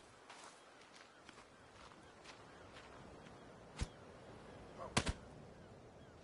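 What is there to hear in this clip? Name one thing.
Footsteps rustle through grass at a steady walking pace.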